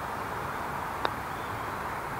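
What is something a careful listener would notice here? A putter taps a golf ball with a soft click.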